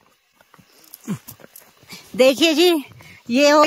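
A man talks with animation nearby, outdoors.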